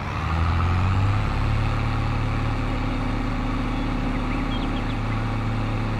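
A tractor engine rumbles steadily as the tractor drives along.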